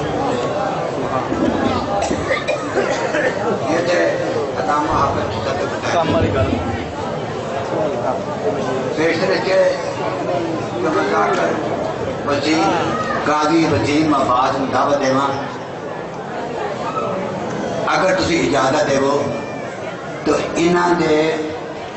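An elderly man speaks with emotion into a microphone.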